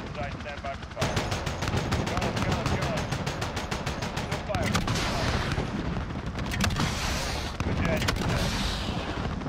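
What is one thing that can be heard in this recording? Explosions boom one after another.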